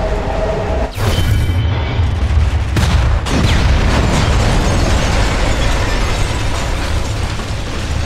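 A loud explosion booms and rumbles as debris crashes down.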